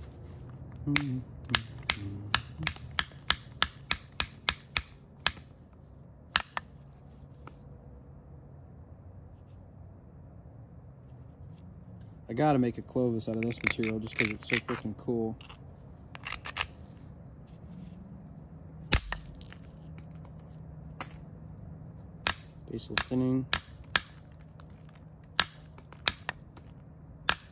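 Sharp clicks sound as an antler tool chips flakes off a stone.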